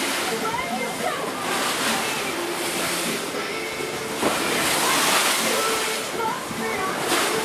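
Water rushes and splashes along the side of a moving boat.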